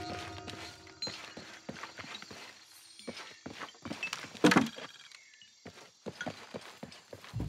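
Footsteps patter quickly over stone and leaves.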